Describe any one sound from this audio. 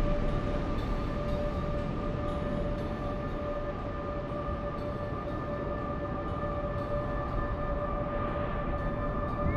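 A large ship's engines rumble steadily.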